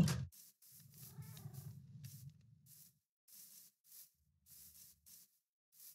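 Footsteps crunch on grass at a steady walking pace.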